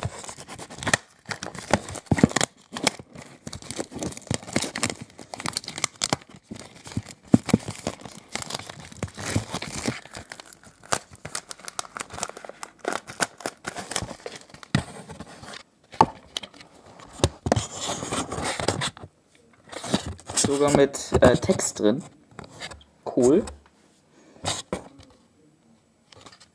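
A plastic case rattles and clicks up close.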